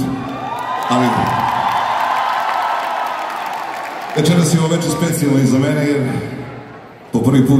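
A live band plays loudly in a large venue.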